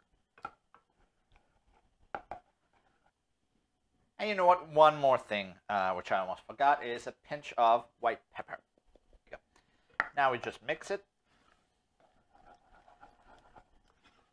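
A wooden spoon scrapes and stirs in a pot.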